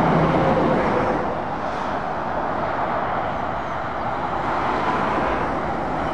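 Traffic rushes past on a busy road outdoors.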